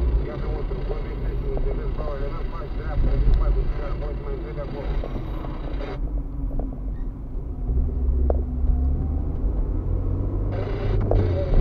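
A car engine hums low and steady, heard from inside the car.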